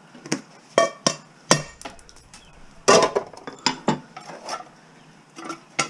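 Metal pans clank and knock against each other.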